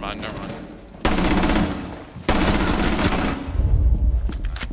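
A gun fires loud rapid bursts.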